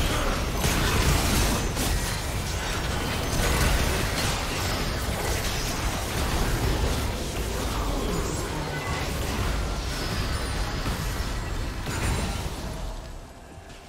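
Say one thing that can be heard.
Spell blasts, hits and explosions clash in a game battle.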